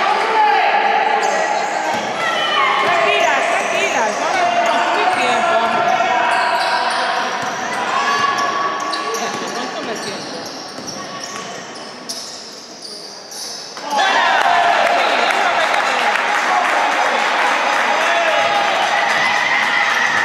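Basketball shoes squeak on a wooden court in an echoing gym.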